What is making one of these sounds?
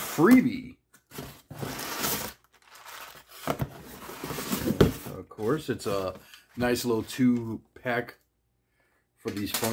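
Cardboard rustles and scrapes as a box is handled.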